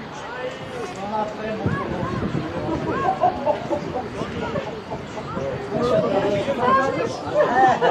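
A group of young boys shout and chatter excitedly outdoors.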